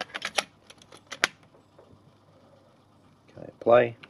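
A cassette snaps into place in a tape holder.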